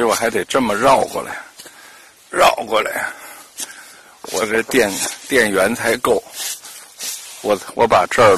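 Footsteps crunch through dry fallen leaves.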